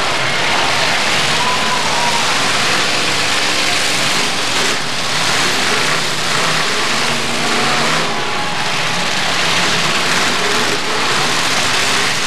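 Cars crash into each other with metal crunching.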